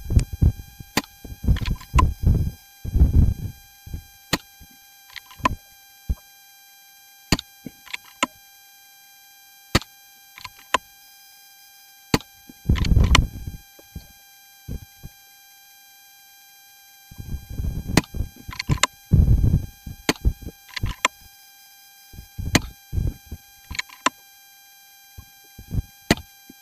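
An air rifle fires with short, sharp snaps.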